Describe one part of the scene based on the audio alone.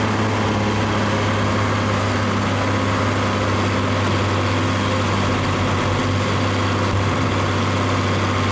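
A truck rumbles as it slowly backs up.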